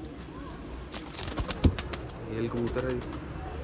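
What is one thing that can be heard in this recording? A pigeon flaps its wings in flight.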